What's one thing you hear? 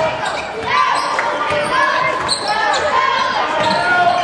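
A basketball bounces on the court as it is dribbled.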